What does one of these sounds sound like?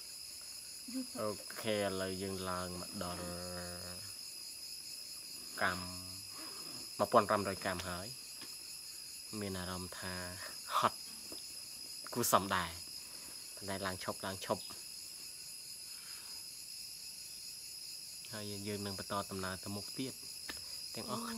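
A man speaks close by with animation, in short bursts with pauses.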